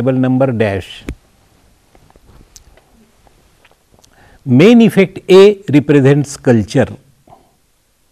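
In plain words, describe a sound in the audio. An elderly man speaks calmly and clearly into a microphone, pausing between phrases.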